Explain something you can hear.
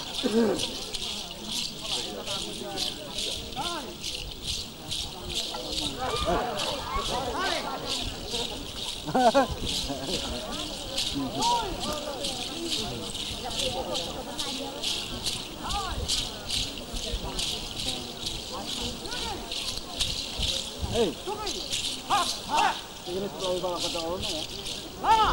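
A group of men chants and calls out while dancing.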